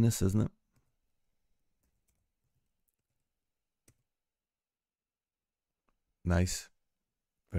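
A man speaks calmly and close to a microphone in short bursts.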